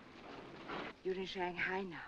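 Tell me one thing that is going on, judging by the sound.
A woman speaks gently and soothingly close by.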